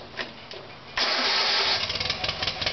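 A tractor engine starts up suddenly.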